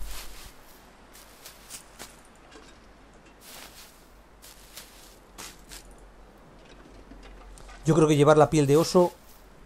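Dry reeds rustle as they are pulled up.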